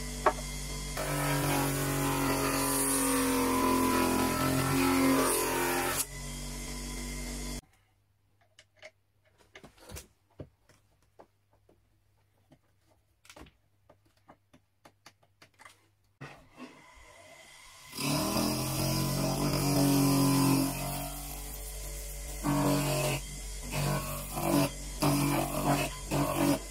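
An electric sanding drum hums and whirs steadily.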